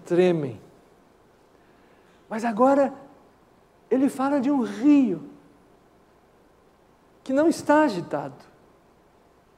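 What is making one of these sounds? A middle-aged man speaks through a microphone in short bursts, with pauses between phrases.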